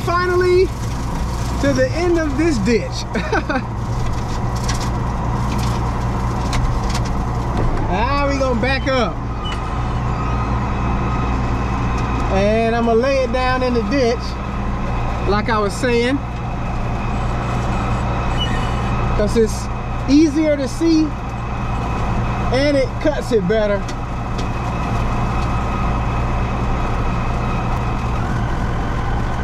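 A rotary mower whirs and churns through dry grass.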